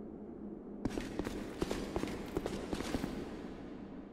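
Armoured footsteps run quickly on stone.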